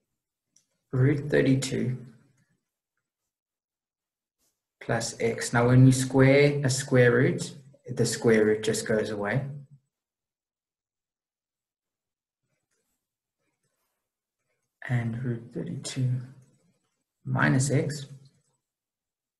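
A man explains calmly into a close microphone, with pauses.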